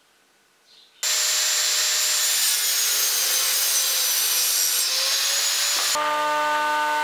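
A table saw roars while cutting wood.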